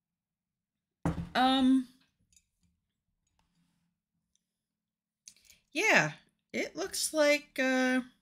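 A woman speaks expressively into a close microphone.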